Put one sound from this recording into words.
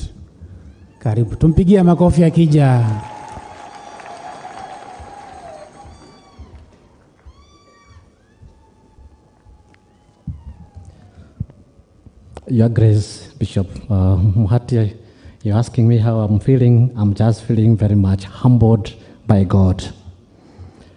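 A man chants in a deep voice through a microphone and loudspeakers.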